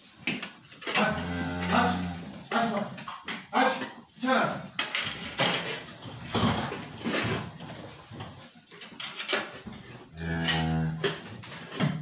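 A cow moos loudly nearby in an echoing barn.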